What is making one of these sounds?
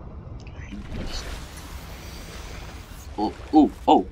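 Water splashes and bubbles as a swimmer breaks the surface.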